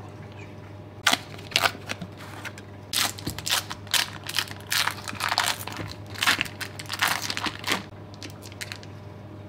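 Foil packaging crinkles and rustles.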